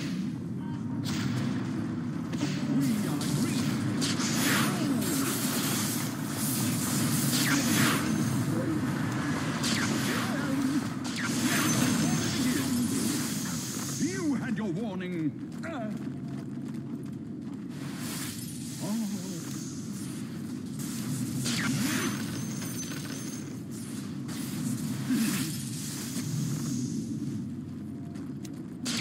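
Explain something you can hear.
Magic spells whoosh and crackle in a battle.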